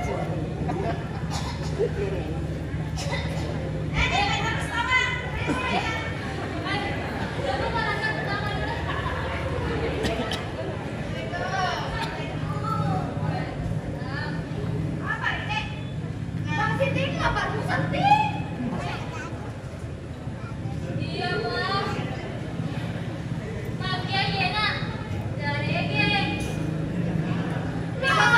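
A woman speaks with animation through a loudspeaker in a large echoing hall.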